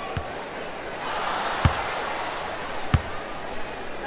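A crowd in a large arena cheers loudly.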